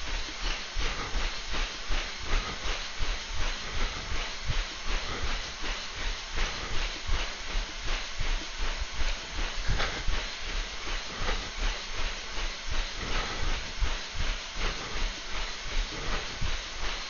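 Feet pound steadily on a running treadmill.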